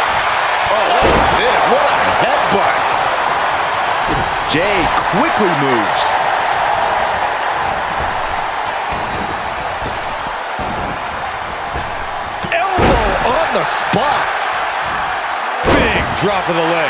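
Wrestlers' bodies thud onto the ring mat.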